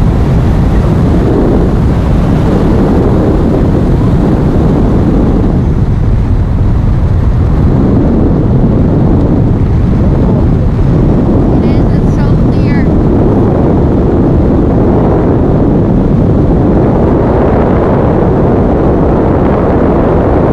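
Strong wind roars loudly past a microphone throughout.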